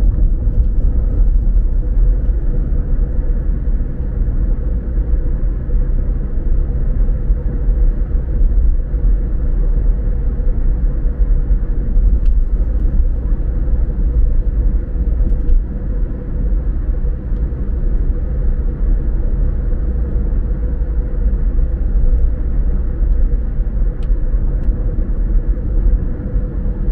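Tyres roll steadily over the road.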